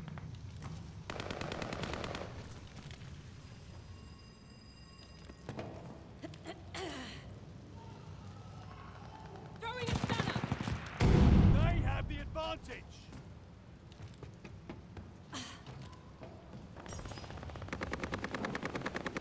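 Rapid gunfire rattles in short bursts.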